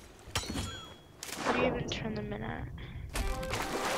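Water splashes as a swimmer dives under.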